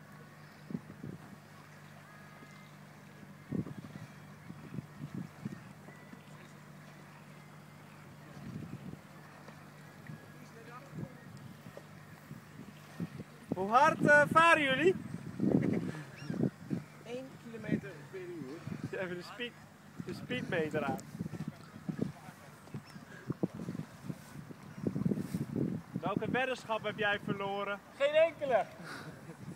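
A swimmer splashes in the water.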